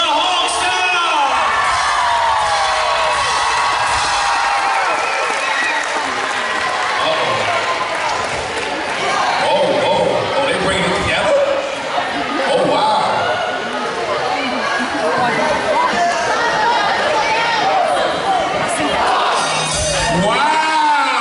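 A crowd of players cheers and shouts excitedly in an echoing gym.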